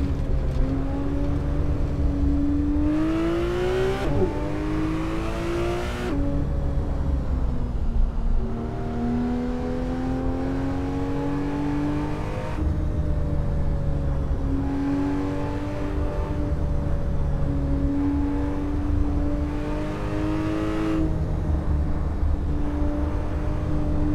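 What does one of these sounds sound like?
A car engine revs up and down, shifting through gears.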